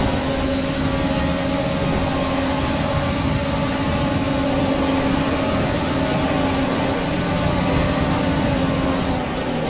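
A racing car engine screams at high revs, steady at full speed.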